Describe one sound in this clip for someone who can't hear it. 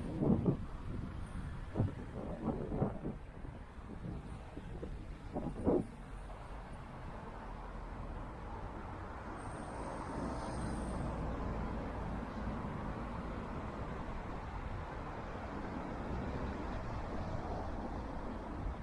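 Cars drive past on a nearby road with a steady rumble.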